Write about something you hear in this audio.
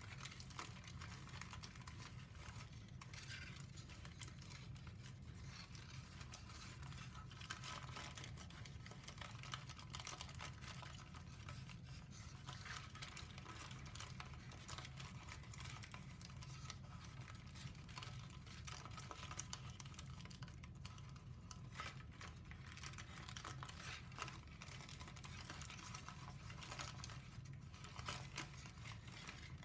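Paper crinkles and rustles as hands fold it.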